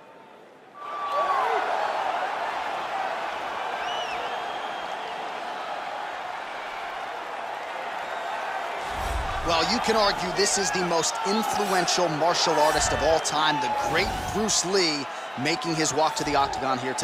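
A large crowd roars and cheers in a vast echoing arena.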